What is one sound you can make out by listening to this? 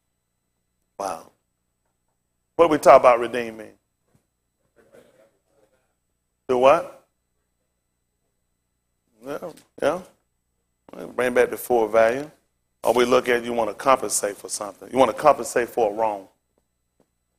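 A man speaks clearly into a microphone in bursts, pausing between phrases.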